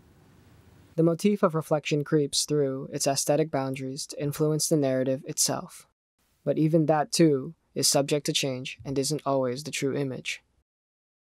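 A man speaks quietly, close by.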